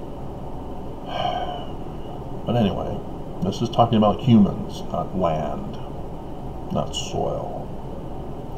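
A middle-aged man speaks calmly and hesitantly, close to a microphone.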